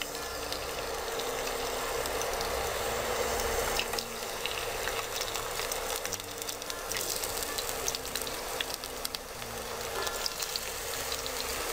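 Oil sizzles and crackles steadily in a pan.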